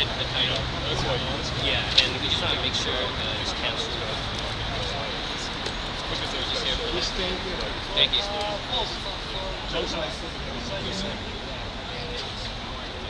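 An older man talks close by, outdoors.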